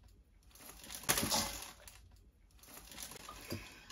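A young woman gasps in surprise.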